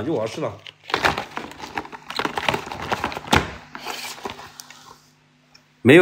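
Cardboard boxes rustle and knock as they are handled.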